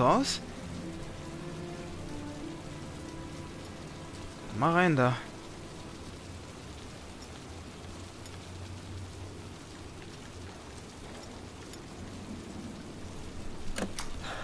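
Metal lock picks scrape and click inside a door lock.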